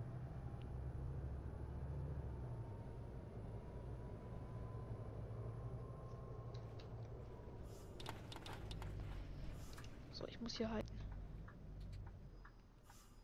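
A bus engine hums steadily as it drives along a road.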